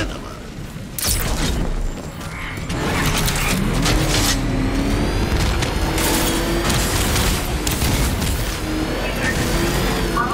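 A powerful car engine roars and revs.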